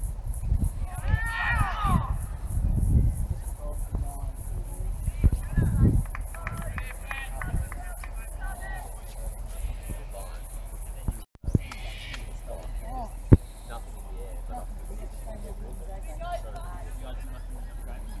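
Men call out to each other in the distance across an open field.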